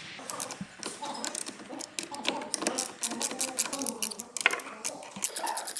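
A wrench clicks rapidly as it is turned.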